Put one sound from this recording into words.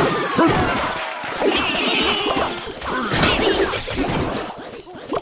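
Game sound effects clatter and chime.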